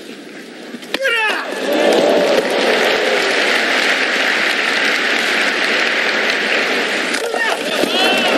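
A block of ice shatters with a sharp crack.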